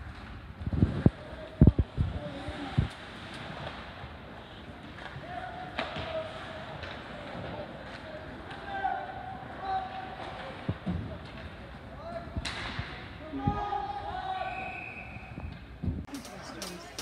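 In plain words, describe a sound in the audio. Hockey sticks clack against a puck in an echoing rink.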